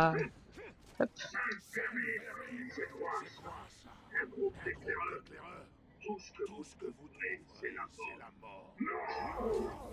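A gruff male creature speaks with a growling, taunting voice.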